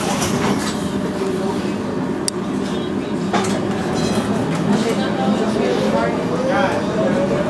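A busy city street hums steadily outdoors.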